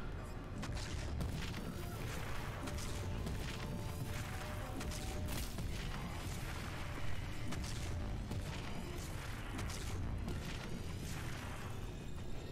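Rapid gunfire and explosions boom from a game.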